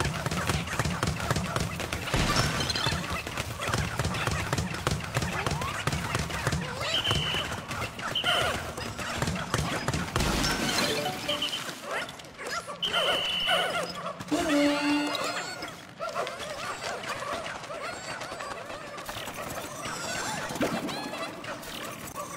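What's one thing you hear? Small cartoon creatures chirp and squeak in high voices.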